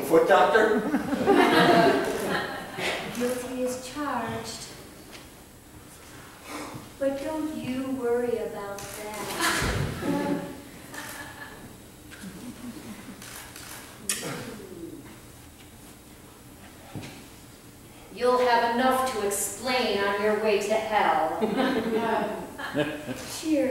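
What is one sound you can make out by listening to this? A woman speaks with feeling in a hall with a slight echo.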